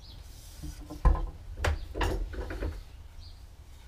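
A wooden board knocks against a workbench.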